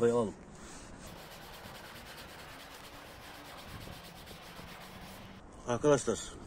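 A cloth rubs against a car door frame.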